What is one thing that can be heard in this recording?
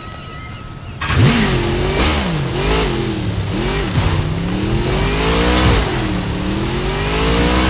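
A motorcycle engine revs up and down loudly as it speeds along.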